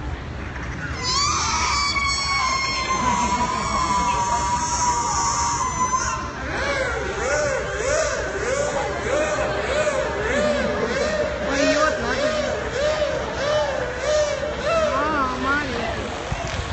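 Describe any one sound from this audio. An orca whistles and squeals in rising and falling calls.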